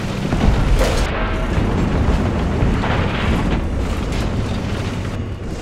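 A tank engine rumbles deeply and steadily.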